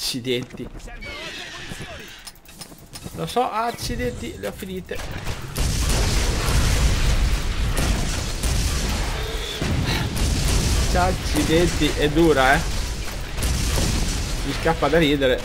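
A large creature roars and snarls.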